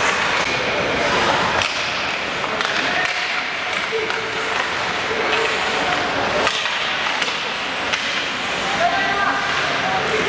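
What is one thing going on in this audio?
Skates scrape and hiss across ice in a large echoing arena.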